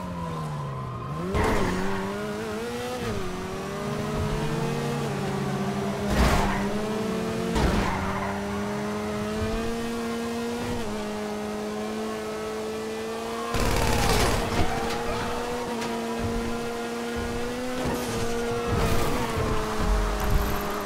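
A car engine hums steadily and shifts pitch as the car speeds along.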